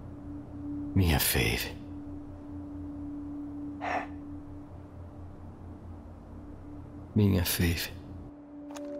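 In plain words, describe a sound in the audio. A man speaks in a low, hushed voice close to a microphone.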